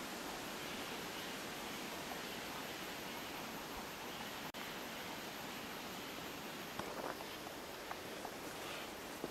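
Leaves rustle softly in a steady breeze outdoors.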